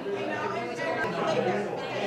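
An elderly woman laughs.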